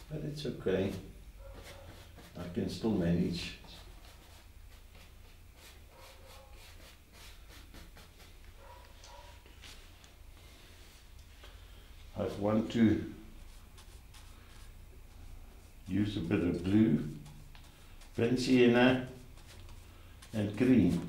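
An elderly man speaks calmly and close by, in short phrases with pauses.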